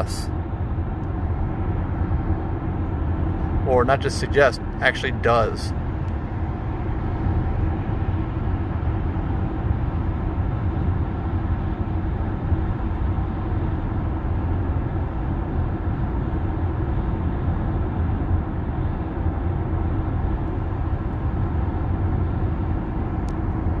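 A car hums steadily along a highway, with road and tyre noise inside the cabin.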